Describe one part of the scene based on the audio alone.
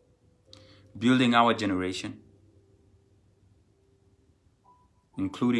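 A young man speaks calmly into a microphone, heard as over an online call.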